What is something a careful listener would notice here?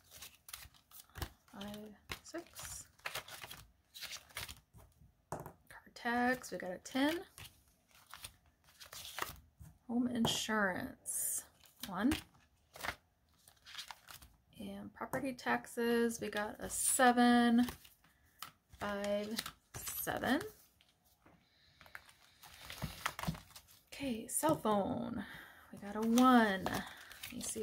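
Plastic binder pages rustle and flip.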